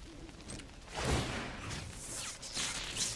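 A magical whoosh sweeps across as a spell is cast.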